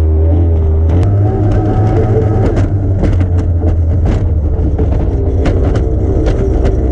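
The hull slams and thumps against choppy waves.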